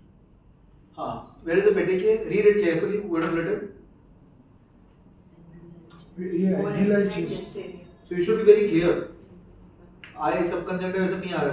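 A man lectures calmly, close by.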